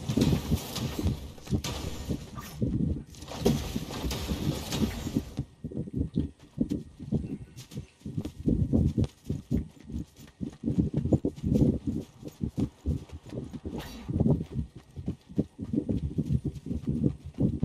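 Footsteps thud quickly on grass and earth.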